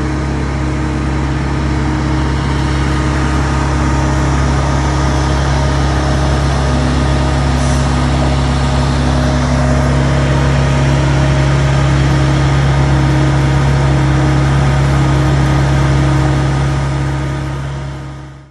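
An engine drones steadily nearby.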